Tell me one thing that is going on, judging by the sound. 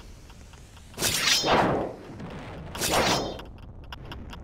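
A sword swings and swooshes sharply through the air.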